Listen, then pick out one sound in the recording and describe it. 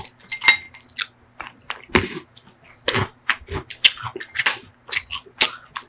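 A man smacks his lips and eats noisily close to a microphone.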